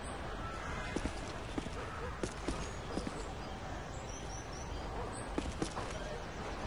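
Footsteps thud softly on hard ground.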